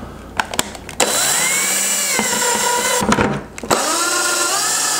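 A power drill whirs as it bores into plastic.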